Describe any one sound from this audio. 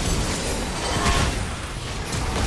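A tower crumbles with a loud blast.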